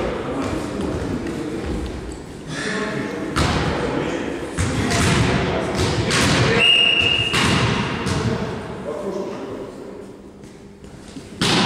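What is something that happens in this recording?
Young men call out to each other across an echoing hall.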